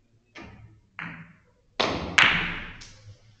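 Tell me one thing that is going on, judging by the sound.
Billiard balls knock against each other with sharp clicks.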